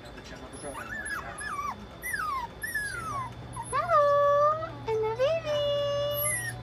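Puppies whine and yelp in high, sliding cries close by.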